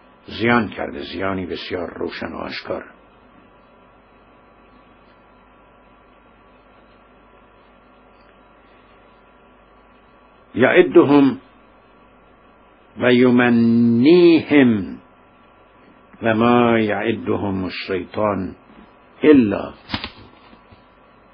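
A middle-aged man speaks calmly into a close microphone, pausing now and then.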